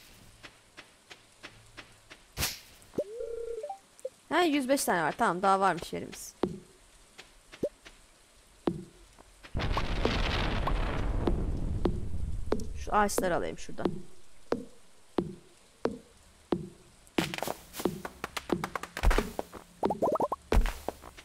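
Soft footsteps tap steadily on dirt.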